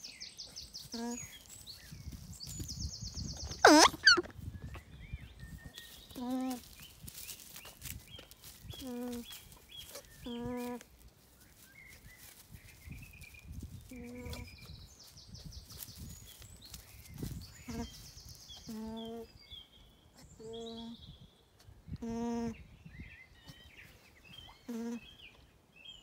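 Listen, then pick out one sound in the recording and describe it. An alpaca hums in short, repeated calls close by.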